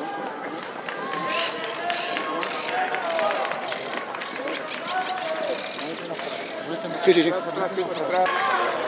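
A crowd of people talks and murmurs outdoors.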